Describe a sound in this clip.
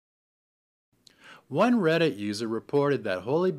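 An older man speaks calmly and close to a microphone.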